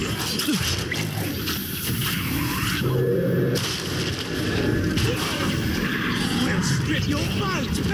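Blades slash and clang in a close fight.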